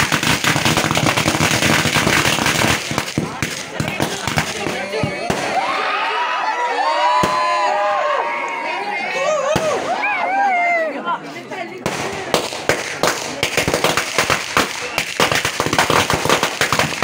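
Fireworks crackle and pop rapidly nearby.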